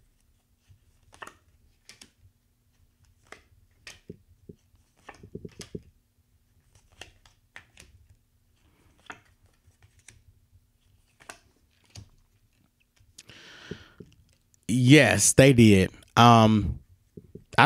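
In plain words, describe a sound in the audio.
Cards tap softly as they are laid down on a table.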